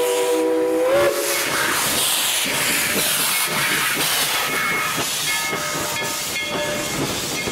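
A steam locomotive rolls slowly past with clanking wheels.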